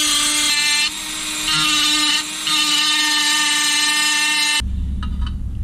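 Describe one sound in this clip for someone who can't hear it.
A rotary tool whines at high speed, grinding metal.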